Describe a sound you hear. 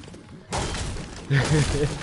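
A pickaxe strikes a wooden door with heavy thuds.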